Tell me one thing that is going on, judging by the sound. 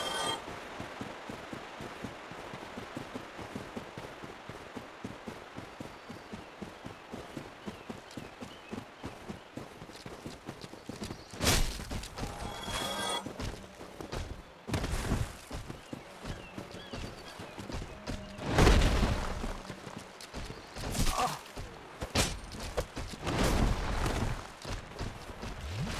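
Armoured footsteps tramp steadily through grass.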